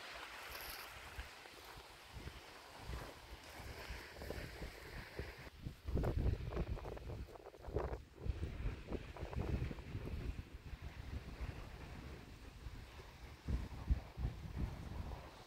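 Gentle waves wash onto the shore.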